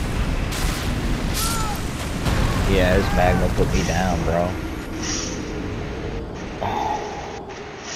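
Fire roars and crackles loudly.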